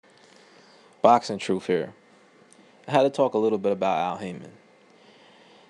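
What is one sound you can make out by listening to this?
A man talks close by in a low, animated voice.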